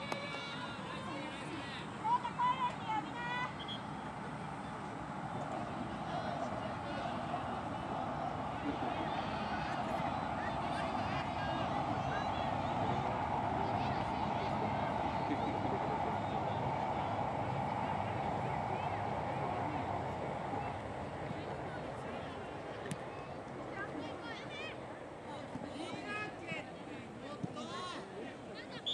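Young boys shout to each other across the field.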